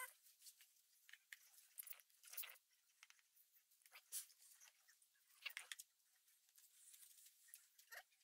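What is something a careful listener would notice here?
Wet fibre squelches and crackles under hands.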